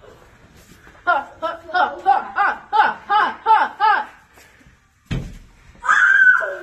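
A young boy laughs and squeals close by.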